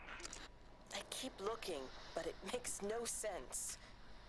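A woman's voice speaks faintly through a small radio.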